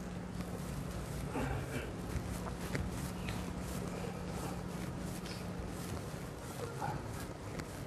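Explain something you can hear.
A felt eraser wipes across a chalkboard.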